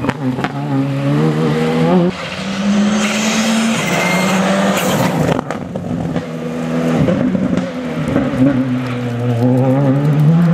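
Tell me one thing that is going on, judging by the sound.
A rally car engine roars loudly, revving up and down as it speeds past close by.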